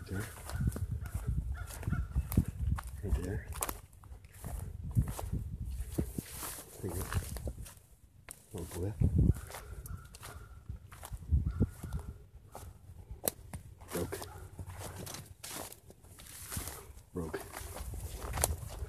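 Footsteps crunch through dry grass and brush.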